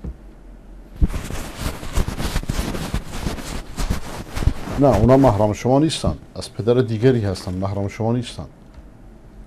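A middle-aged man speaks with emphasis into a close microphone.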